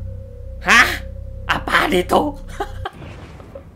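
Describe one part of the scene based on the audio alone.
A young man shouts excitedly close to a microphone.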